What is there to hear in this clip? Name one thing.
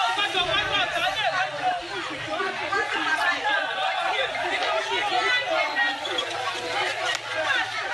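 A crowd of men and women shout excitedly nearby.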